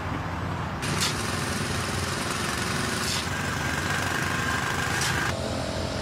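A shovel scrapes through wet mud.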